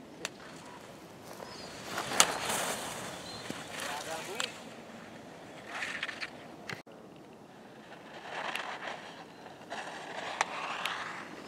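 Skis carve and scrape loudly over hard snow.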